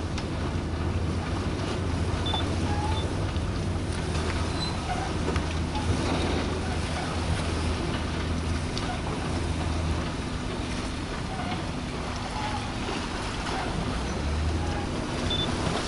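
A large ship's engines hum low and steady across the water.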